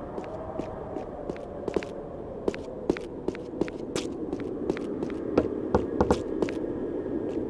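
Quick footsteps run on hard stone.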